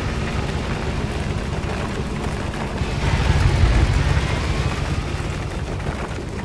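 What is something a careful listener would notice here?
A vehicle engine revs roughly as it drives over bumpy ground.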